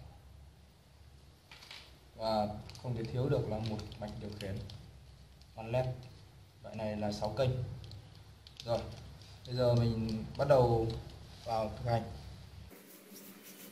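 A plastic bag crinkles as hands handle it.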